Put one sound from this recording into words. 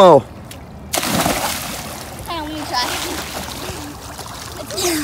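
Water churns and laps in a swimming pool.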